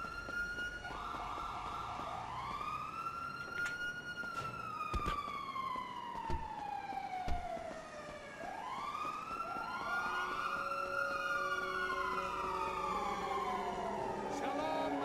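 Footsteps run quickly on hard pavement.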